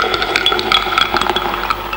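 Liquid pours into a glass.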